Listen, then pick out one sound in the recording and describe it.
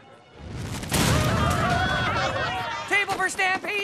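A young woman speaks anxiously.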